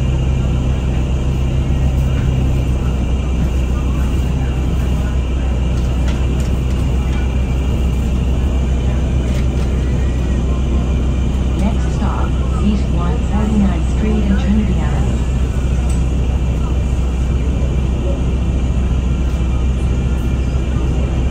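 A bus engine rumbles steadily from inside the bus as it drives along.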